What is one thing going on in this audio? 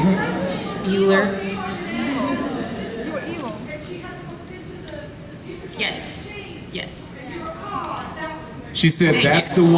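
A woman speaks with animation into a microphone, heard through a loudspeaker in a large hall.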